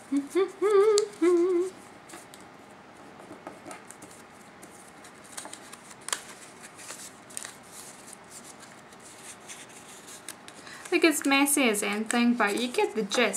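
Paper crinkles and rustles as it is folded by hand.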